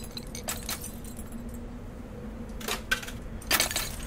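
A coin chimes as it is collected.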